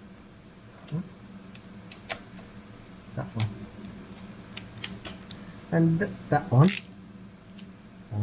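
A ratchet clicks as a bolt is turned.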